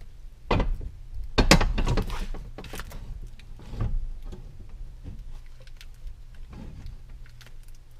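Fabric rustles and thumps close by as a person shifts about.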